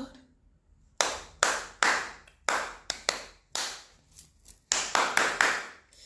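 A woman claps her hands sharply, again and again.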